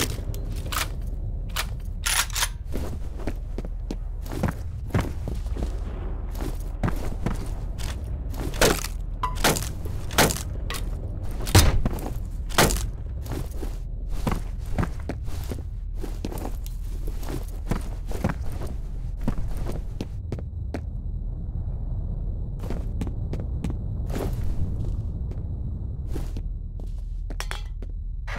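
Footsteps thud on wooden floors and creak through the rooms.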